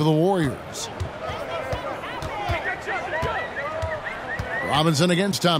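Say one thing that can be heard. A basketball bounces on a hardwood court in steady dribbles.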